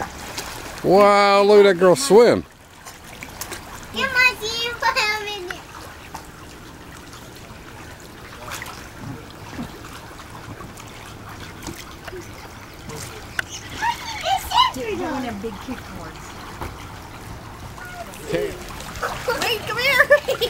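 A young child squeals and babbles close by.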